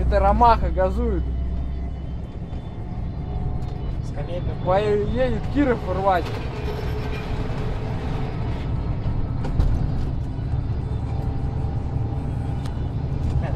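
A truck engine rumbles steadily from inside the cab.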